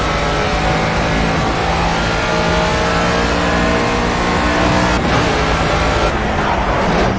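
A racing car engine roars at high revs, rising in pitch through the gears.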